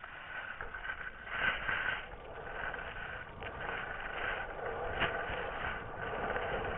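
Skis scrape and hiss over snow.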